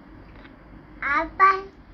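A toddler babbles briefly, close by.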